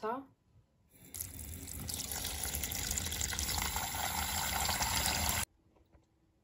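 Water pours from a tap into a plastic pitcher.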